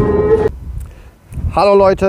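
A middle-aged man speaks with animation close to a microphone outdoors.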